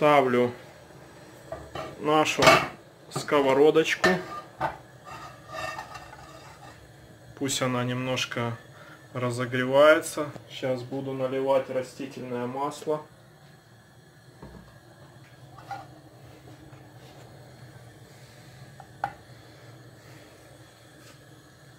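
A gas burner hisses softly.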